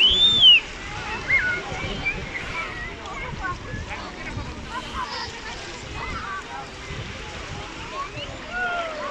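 Shallow water laps and splashes gently close by.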